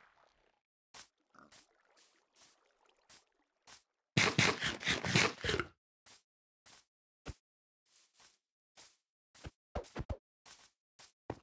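Soft footsteps thud on grass.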